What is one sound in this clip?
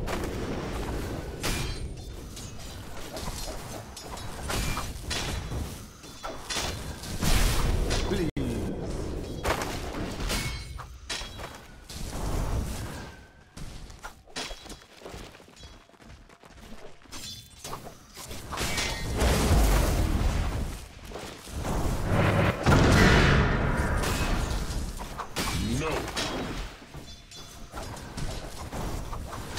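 Spell effects crackle and boom as game characters fight.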